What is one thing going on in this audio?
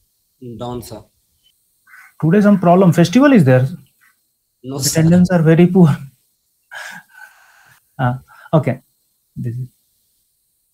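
A man speaks with animation into a nearby microphone.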